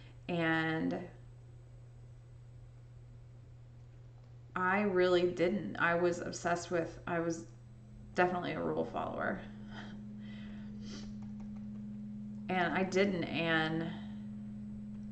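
A young woman talks casually into a microphone, close up.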